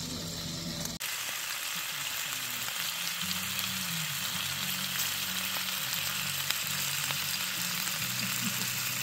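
Food sizzles softly in a frying pan.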